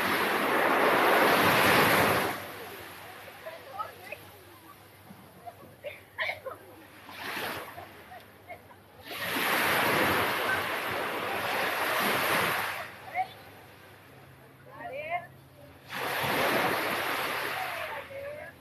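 A young man's bare feet shuffle and thump on sand.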